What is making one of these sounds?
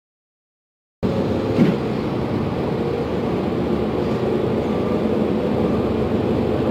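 A bus engine hums and rumbles steadily from inside the moving bus.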